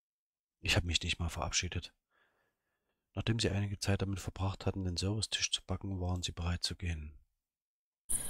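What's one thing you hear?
A man reads out calmly and closely into a headset microphone.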